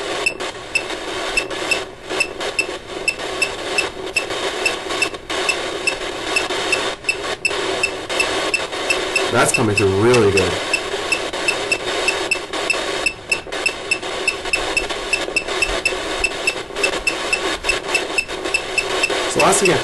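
Soft clicks tick quickly and evenly from a phone speaker.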